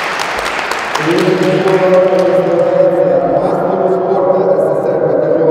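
An elderly man speaks into a microphone over loudspeakers in a large echoing hall.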